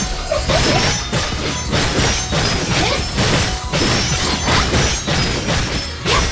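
Energetic game music plays.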